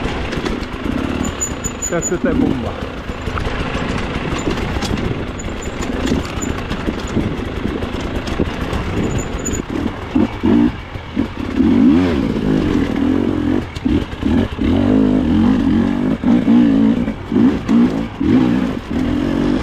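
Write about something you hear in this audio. Tyres crunch and scrabble over loose dirt and roots.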